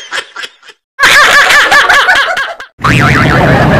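A young man laughs heartily into a microphone.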